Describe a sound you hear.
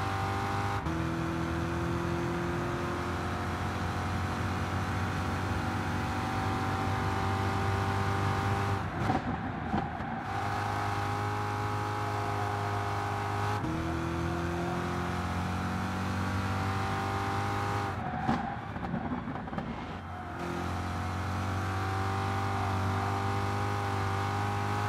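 A racing car engine roars steadily at high revs, dropping sharply as the car brakes for corners and then climbing again.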